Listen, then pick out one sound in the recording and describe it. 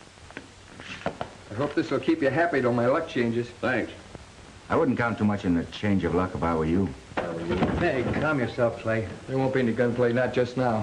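A man speaks in a firm, measured voice.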